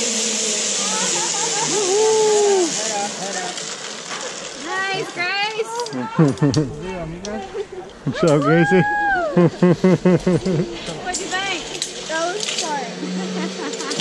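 Young men and women shout and talk excitedly close by.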